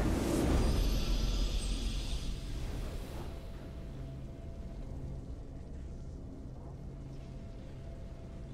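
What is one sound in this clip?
A triumphant fanfare plays and swells.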